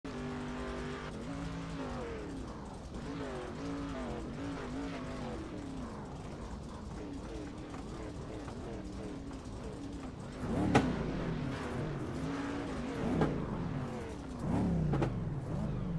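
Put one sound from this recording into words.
Race car engines roar and rev up and down.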